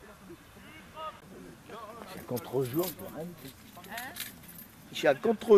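Men shout across an open outdoor field.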